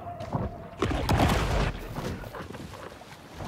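Water splashes at the surface as a large fish swims.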